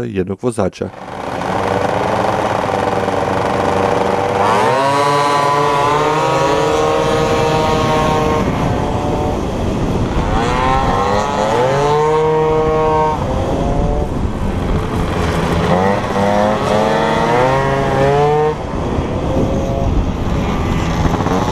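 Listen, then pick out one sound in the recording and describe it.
A scooter engine whines loudly, rising and falling in pitch as it revs.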